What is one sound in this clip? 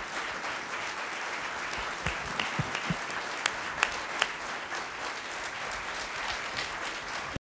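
A large crowd claps and cheers loudly in a big echoing hall.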